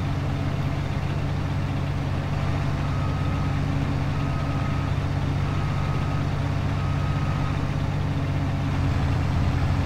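A large harvester engine drones steadily with a deep, low rumble.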